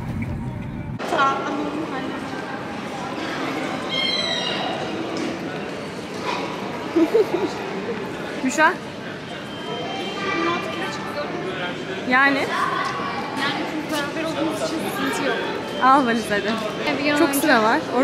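Voices murmur and echo through a large hall.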